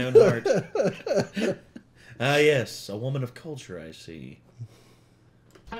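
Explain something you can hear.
A man laughs loudly and talks with animation close to a microphone.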